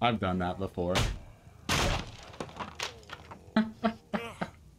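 Wooden planks crash and splinter as they break.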